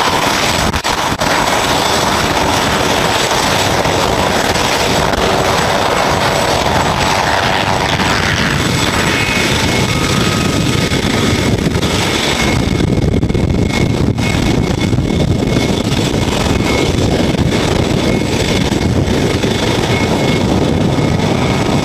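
Helicopter rotor blades thump rapidly as it taxis past.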